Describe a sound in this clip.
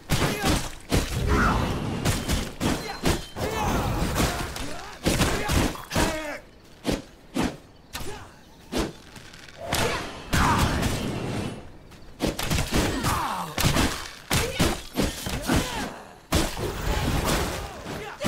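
Swords slash and clash in a game fight.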